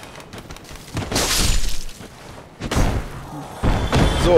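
Metal weapons clash and strike.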